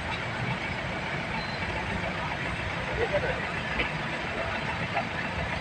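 A van engine idles.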